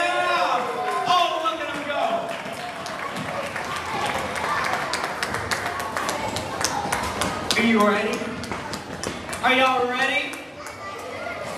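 Children in the audience clap along.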